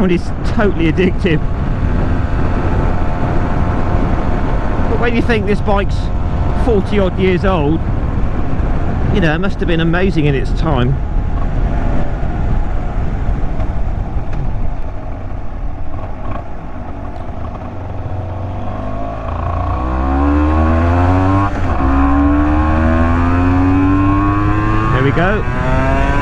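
A motorcycle engine revs up and down through gear changes.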